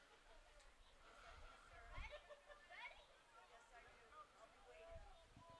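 Football players call out in the distance.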